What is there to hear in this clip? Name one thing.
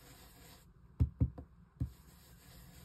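A sponge taps on an ink pad.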